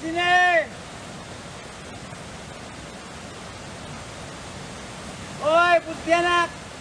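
A small waterfall splashes steadily onto rocks.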